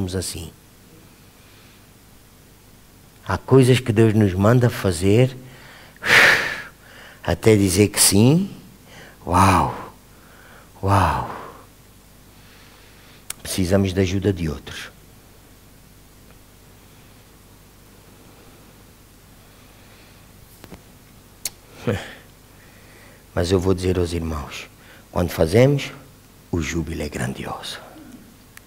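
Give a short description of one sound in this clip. A middle-aged man speaks with animation into a microphone, pausing often.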